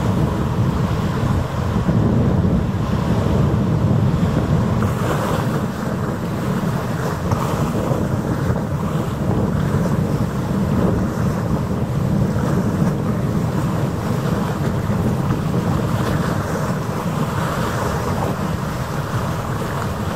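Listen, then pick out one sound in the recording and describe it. Strong wind blows and rumbles outdoors.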